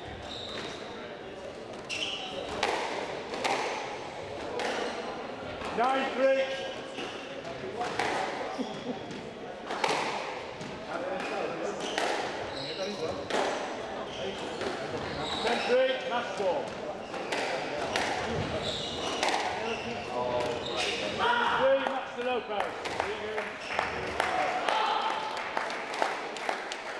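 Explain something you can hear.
A squash ball smacks sharply against the walls and rackets in an echoing court.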